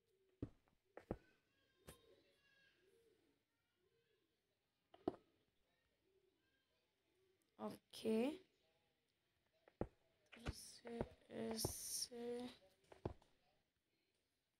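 A block breaks with a crumbling crunch.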